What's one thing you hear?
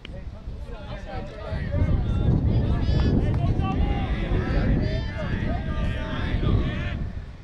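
Young men shout and cheer from a distance.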